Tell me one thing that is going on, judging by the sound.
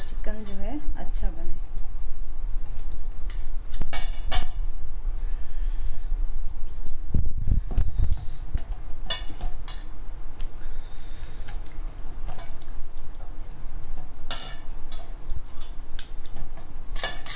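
Wet, sticky squelching as hands knead chicken in a paste.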